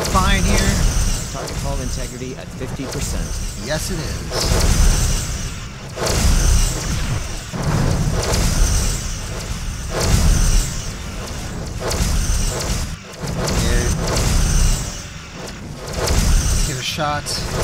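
A low rumbling roar of blasts pulses again and again.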